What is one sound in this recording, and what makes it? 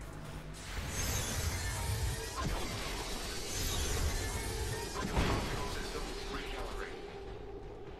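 A loud explosion booms and roars close by.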